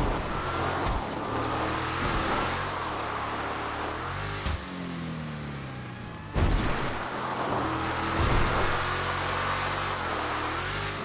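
An off-road buggy engine roars and revs up and down.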